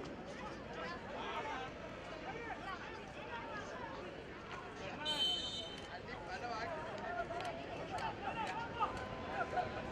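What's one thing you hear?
A large outdoor crowd of spectators chatters and shouts.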